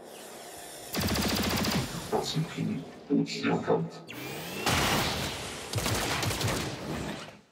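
Gunfire bursts out in loud, rapid rattles.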